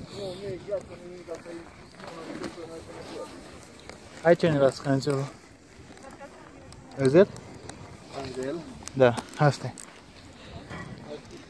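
Snowboard binding straps ratchet and click.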